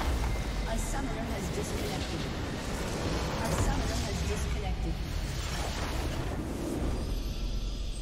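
A huge crystal structure explodes with a deep rumbling boom.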